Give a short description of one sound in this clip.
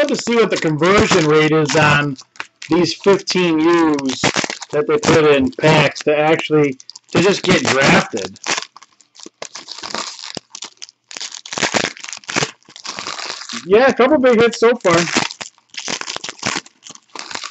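Foil wrappers crinkle and rustle as they are torn open by hand.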